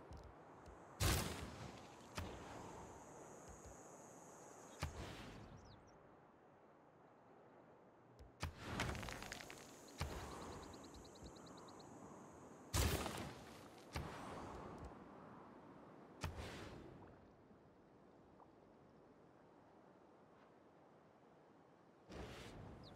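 Short game interface clicks and whooshes sound now and then.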